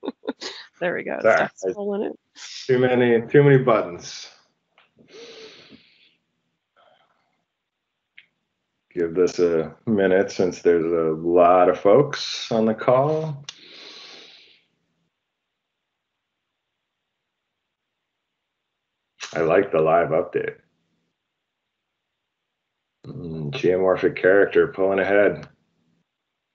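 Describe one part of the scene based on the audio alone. A man talks calmly over an online call, pausing between phrases.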